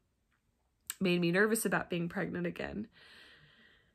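A woman speaks emotionally, close to the microphone.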